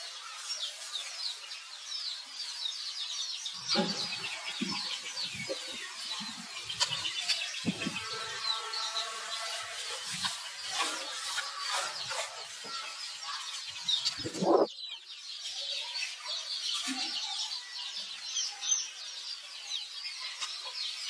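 Leaves rustle under a monkey's feet.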